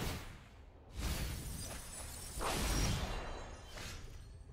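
A digital card game plays a soft whooshing effect as a card is played.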